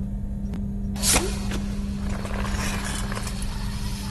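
A springy grabber launches out with a whoosh and retracts.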